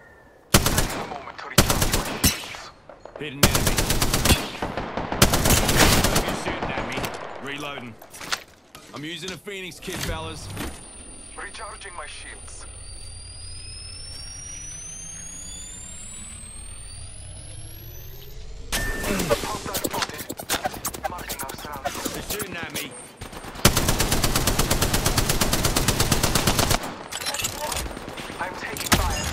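Rapid gunfire rattles in loud, close bursts.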